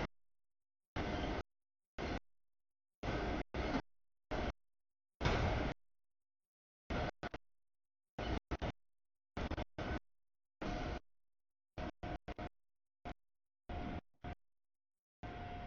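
A long freight train rumbles and clatters past.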